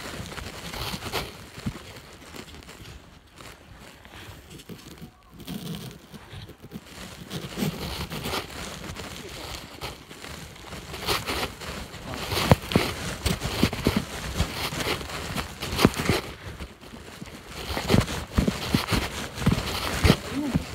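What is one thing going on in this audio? Footsteps crunch and rustle through dry leaves on a forest path.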